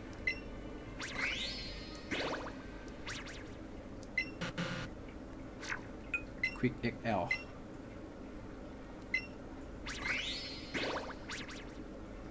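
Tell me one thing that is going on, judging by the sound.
A bright rising chime jingle plays.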